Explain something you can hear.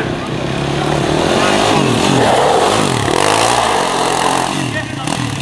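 A quad bike engine revs up and down loudly close by.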